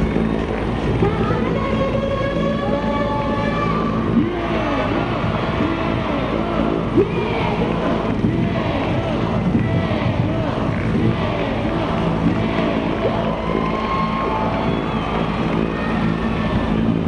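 Men call out to each other over the engine noise.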